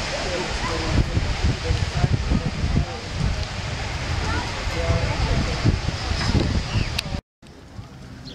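Wind blows hard against the microphone outdoors.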